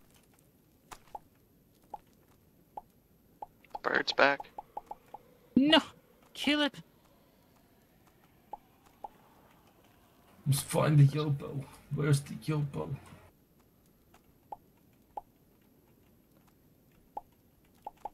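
Short soft pops sound as crops are picked in a video game.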